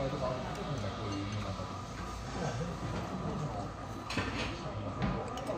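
A woman chews and hums with pleasure close by.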